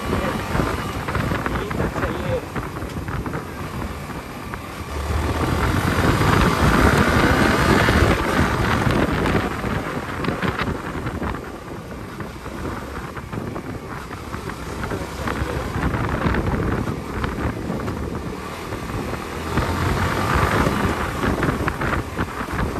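A motorcycle engine roars close by, rising and falling as the rider speeds up and slows down.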